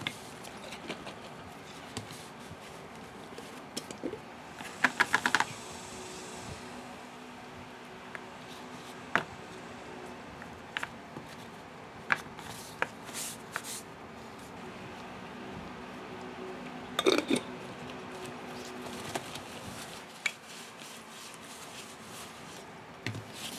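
A paper towel crinkles as a hand wipes a jar.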